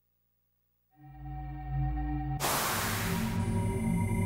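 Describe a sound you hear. A magical shimmering whoosh swells up loudly.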